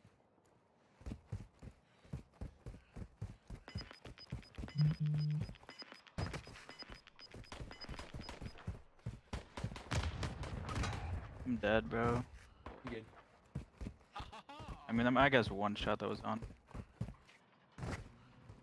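Quick footsteps crunch on gravel.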